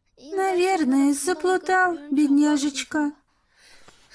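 A young woman speaks softly and hesitantly.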